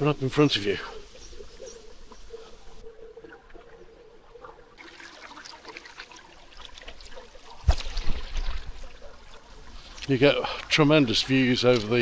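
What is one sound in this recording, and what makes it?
Water trickles over rocks in a shallow stream.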